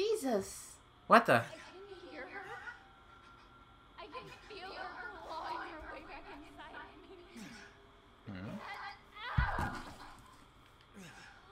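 A young woman screams and sobs in distress.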